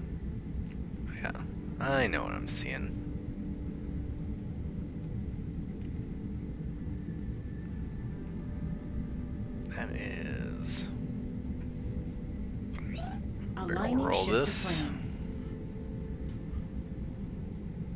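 A spaceship's engines rumble steadily.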